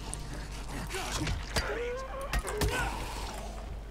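Heavy blows thud during a close struggle.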